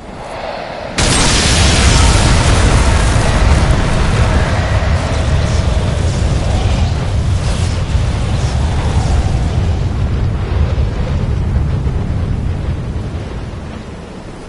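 Thunder rumbles and crackles loudly.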